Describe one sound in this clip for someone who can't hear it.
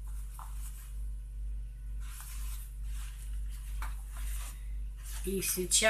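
Pages of a book rustle as they are flipped.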